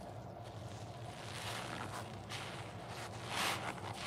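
Gloved hands squeeze a wet sponge with a squelch.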